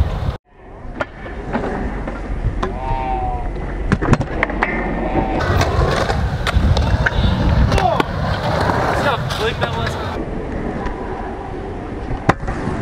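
A scooter deck clacks sharply as it lands on concrete.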